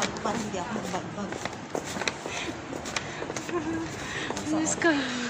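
A woman talks animatedly close by.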